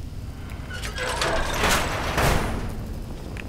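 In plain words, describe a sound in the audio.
A heavy metal door grinds open.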